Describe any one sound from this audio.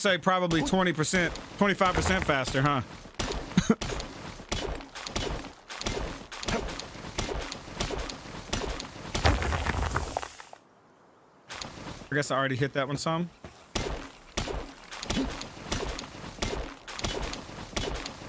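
A pickaxe strikes rock again and again.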